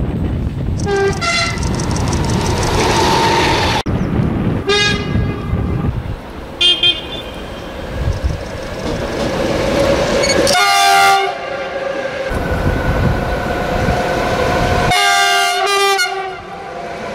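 A train horn sounds several times.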